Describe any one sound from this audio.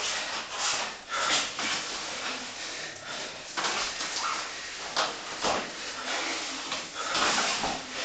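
Two men grunt and breathe hard while grappling.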